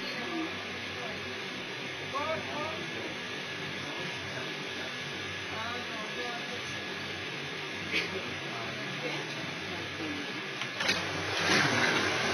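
A woman talks quietly on a phone nearby.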